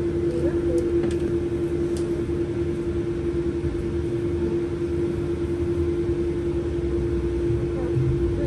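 A bus engine hums steadily while idling.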